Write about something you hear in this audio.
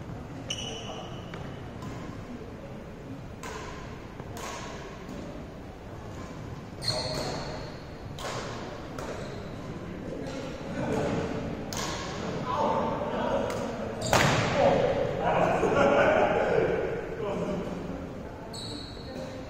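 Rubber soles squeak on a gym floor.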